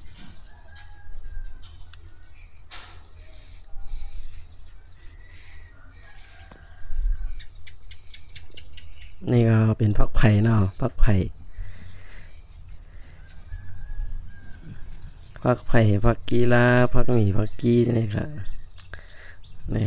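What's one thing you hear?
Leaves rustle as a hand picks a plant stem.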